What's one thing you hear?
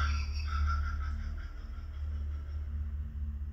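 A man laughs gleefully close by.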